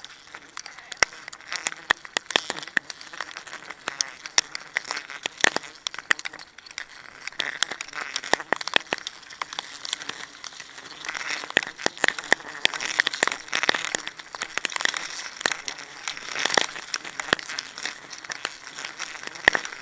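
Wood knocks sharply against a tree trunk.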